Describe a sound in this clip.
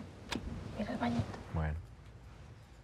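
A woman answers briefly.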